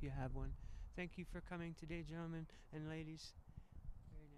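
A man reads aloud calmly outdoors.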